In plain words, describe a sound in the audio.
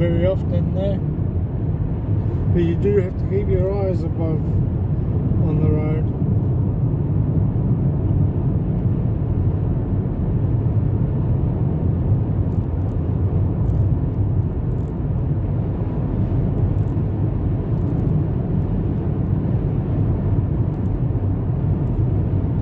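A car's engine and tyres rumble steadily on a highway.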